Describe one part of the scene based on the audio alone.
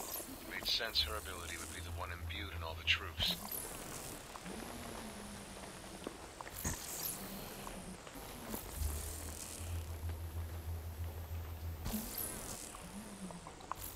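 Crackling energy whooshes and hums in rushing bursts.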